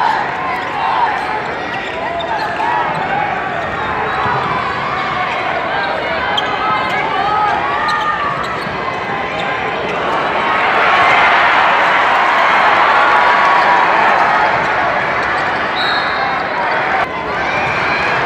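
A large crowd cheers and chatters in an echoing arena.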